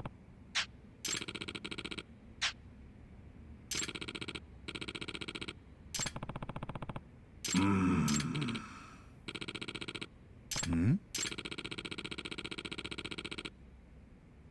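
Rapid electronic blips chatter in short bursts.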